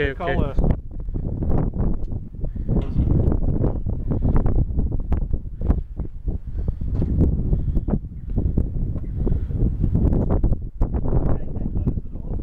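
Wind buffets the microphone outdoors in strong gusts.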